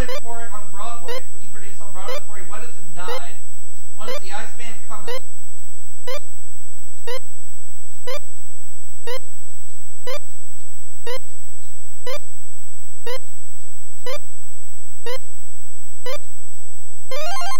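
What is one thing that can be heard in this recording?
A video game timer beeps once every second in a steady countdown.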